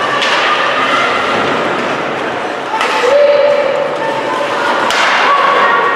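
Hockey sticks smack a puck with sharp cracks.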